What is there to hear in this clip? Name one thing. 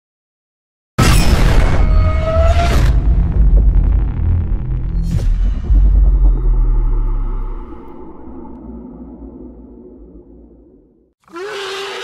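A huge explosion booms and rumbles, then slowly dies away.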